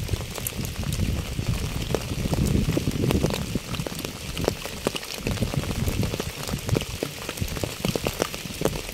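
Raindrops patter into puddles and onto wet leaves outdoors.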